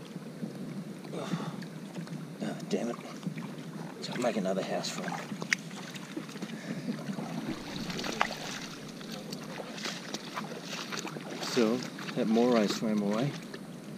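Shallow water laps gently against rocks.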